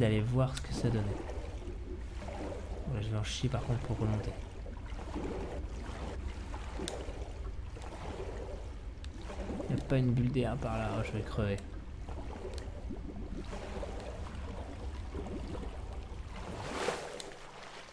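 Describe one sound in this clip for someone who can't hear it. Deep water rumbles low and steady.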